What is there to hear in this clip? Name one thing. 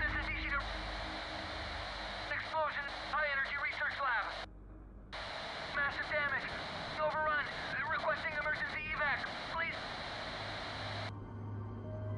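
A radio transmission hisses and crackles with static.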